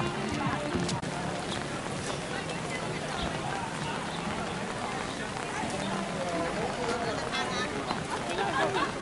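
A crowd of adults chatters nearby.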